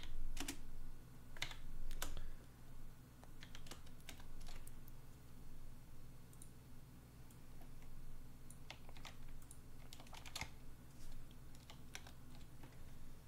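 Keys clatter on a computer keyboard.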